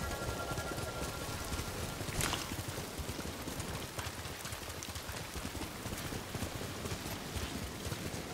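Horse hooves gallop quickly over soft ground.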